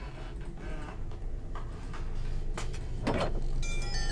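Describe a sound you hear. A heavy metal grate scrapes and clanks as it is lifted away.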